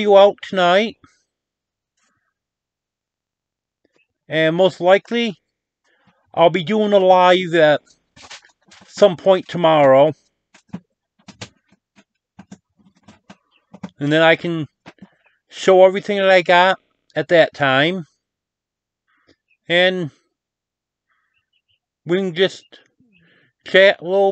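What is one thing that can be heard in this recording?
A middle-aged man speaks calmly and close up, in short bursts with pauses.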